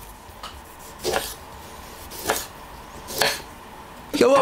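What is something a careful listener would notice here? A knife taps on a wooden board.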